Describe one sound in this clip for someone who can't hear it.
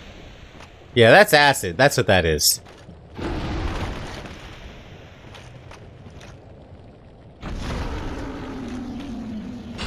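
A huge monster lets out deep, loud roars.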